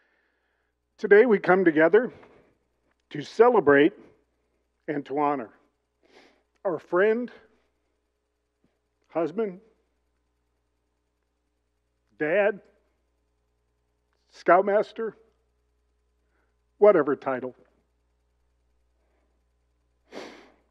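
A man speaks slowly into a microphone, with long pauses.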